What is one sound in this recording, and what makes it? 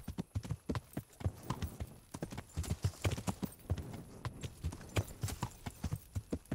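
Horse hooves clop steadily on hard ground.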